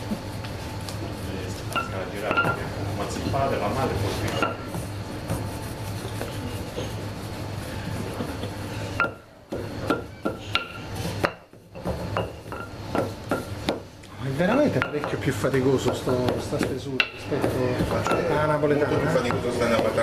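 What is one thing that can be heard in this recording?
A wooden rolling pin rolls and knocks over dough.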